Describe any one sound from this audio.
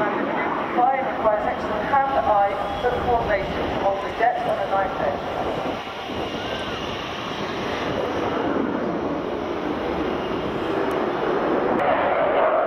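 A jet engine roars loudly overhead.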